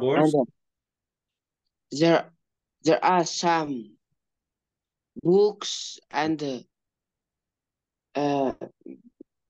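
A woman speaks in short phrases through an online call.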